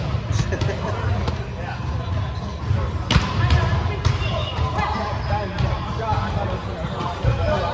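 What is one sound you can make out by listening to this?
A volleyball is hit with sharp slaps in a large echoing gym.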